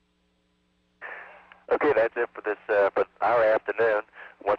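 A man speaks into a microphone close up, clearly and with animation.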